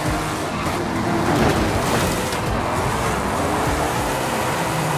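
Tyres screech as a car skids and spins.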